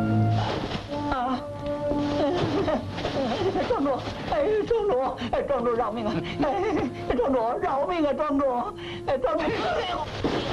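A man pleads desperately, his voice breaking.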